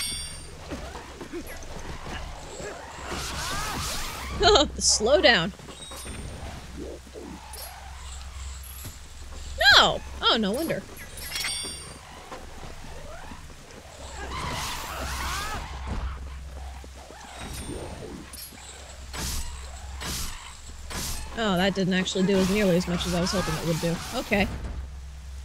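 Swords slash and clang in a fight.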